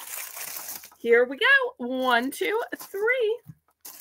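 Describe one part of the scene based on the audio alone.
A small plastic holder is picked up and handled with soft knocks and rustles.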